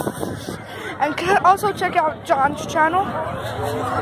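A young boy talks with animation close to the microphone.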